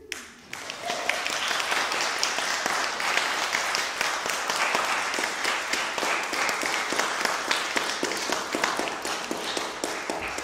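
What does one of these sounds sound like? An accordion plays along.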